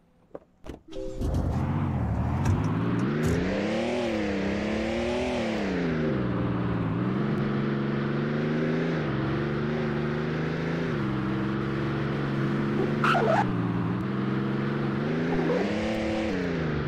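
A car engine starts and revs, rising and falling in pitch as the car drives.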